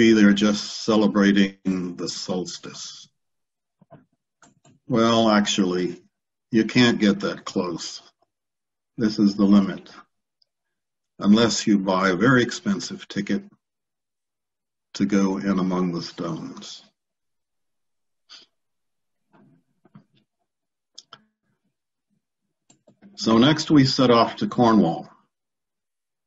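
An elderly man speaks calmly and steadily, heard through a microphone on an online call, with short pauses.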